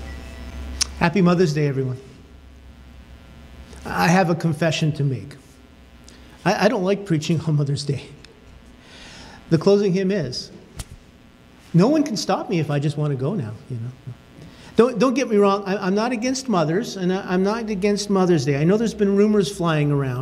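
An older man speaks calmly and expressively through a microphone.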